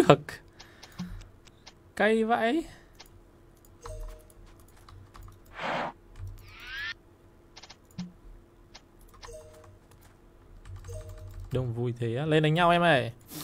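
Magic spells whoosh and chime in short bursts.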